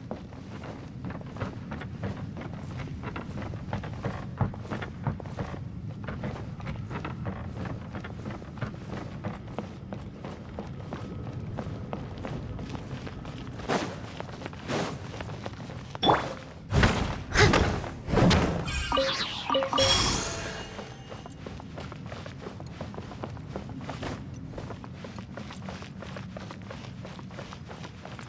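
Footsteps thud quickly on wooden planks.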